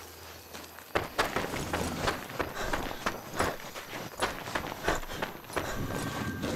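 Footsteps crunch on dry ground and grass.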